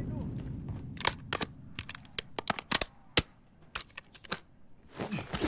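Metal clicks and clacks as a weapon is switched and handled.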